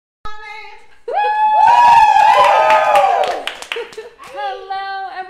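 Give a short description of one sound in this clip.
A group of women sings together loudly, close by.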